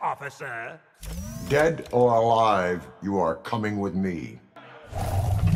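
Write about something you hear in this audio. A man speaks in a flat, robotic voice.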